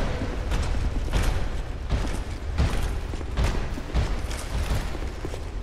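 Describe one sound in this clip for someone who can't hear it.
A sword swings and strikes with repeated heavy blows.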